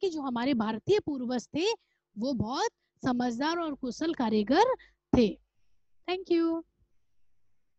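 A woman speaks clearly and with animation through a close headset microphone.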